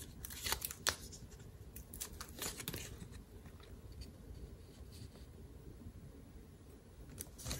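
Stiff paper rustles and taps as it is handled and set down.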